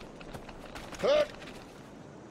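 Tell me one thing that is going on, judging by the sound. A man shouts out briefly.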